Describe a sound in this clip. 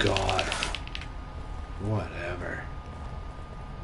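A man talks into a microphone, calmly and close.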